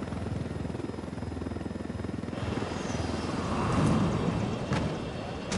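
A helicopter's rotor thumps loudly nearby.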